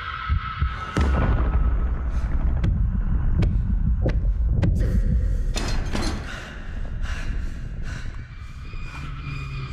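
A man groans and sobs in pain close by.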